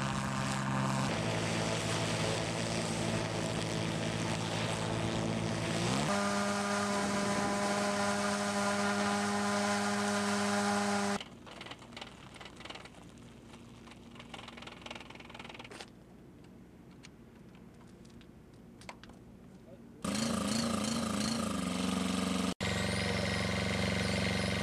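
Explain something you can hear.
A small engine drones loudly at a steady pitch.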